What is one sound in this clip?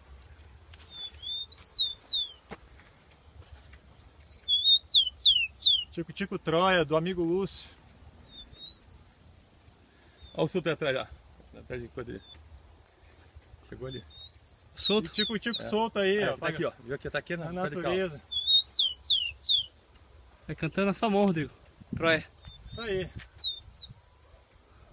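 A caged bird sings high, quick whistling chirps.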